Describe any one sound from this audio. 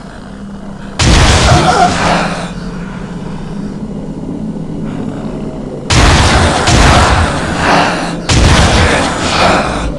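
A gun fires loud rapid bursts.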